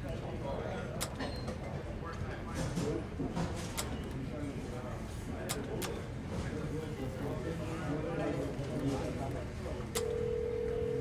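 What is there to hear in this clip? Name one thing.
Payphone keypad buttons click as numbers are pressed.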